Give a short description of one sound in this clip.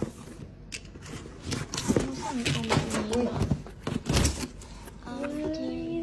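Cardboard flaps scrape and thump as a box is opened.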